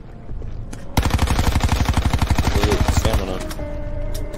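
A gun fires in a rapid burst of loud shots.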